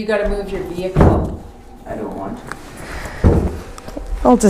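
A heavy wooden frame thumps on the floor.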